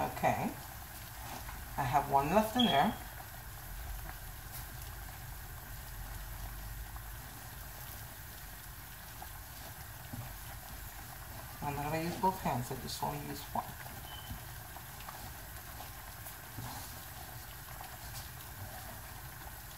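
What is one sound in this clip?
Hands knead soft dough in a metal bowl, with quiet squishing and patting.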